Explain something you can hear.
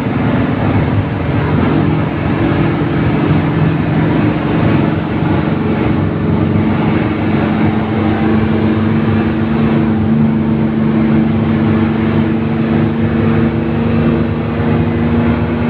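Wind rushes through an open bus window.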